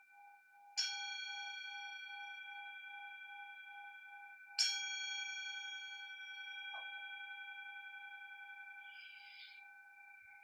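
A singing bowl is struck twice and rings on with a long, slowly fading hum.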